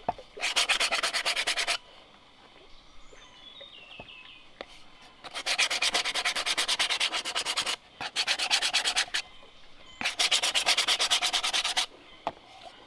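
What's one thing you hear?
Sandpaper rasps quickly back and forth against hollow bamboo.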